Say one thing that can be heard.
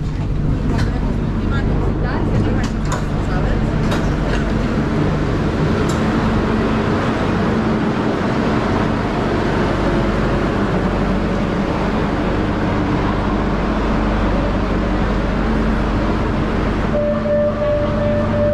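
A metro train hums and rumbles steadily nearby.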